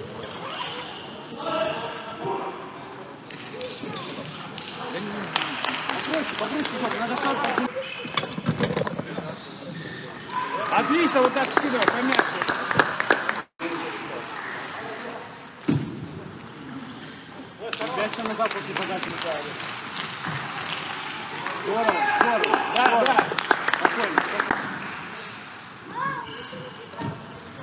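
A ping-pong ball clicks back and forth off paddles and the table in quick rallies.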